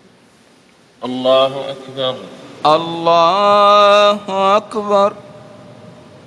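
A man chants in a long, drawn-out voice over a loudspeaker in a large echoing hall.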